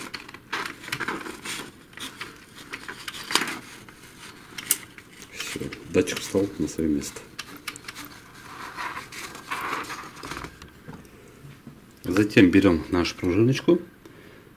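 Plastic and metal parts click and rattle as they are handled.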